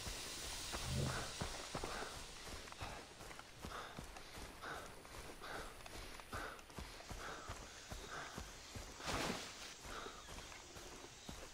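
Footsteps swish through tall grass.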